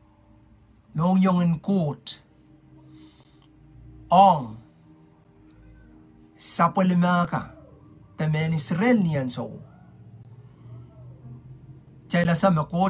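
A man speaks calmly and clearly into a nearby microphone, in short phrases with pauses.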